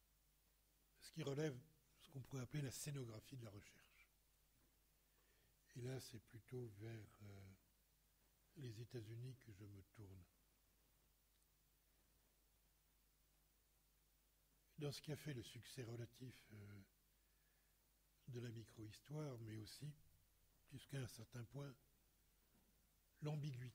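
An elderly man speaks calmly into a microphone, with pauses between phrases.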